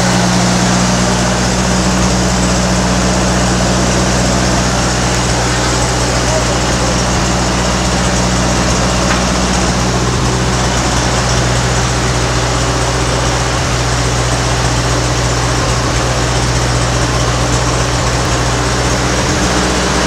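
A tractor engine idles close by with a steady, deep rumble.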